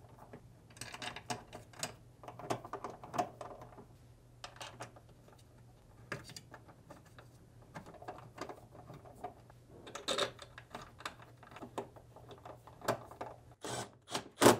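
Hands rattle and click against a plastic motor part.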